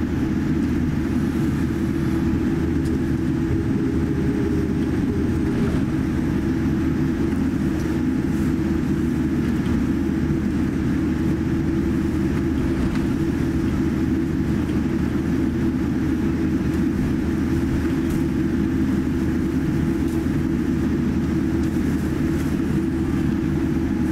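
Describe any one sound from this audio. Jet engines hum and rumble steadily inside a taxiing airliner's cabin.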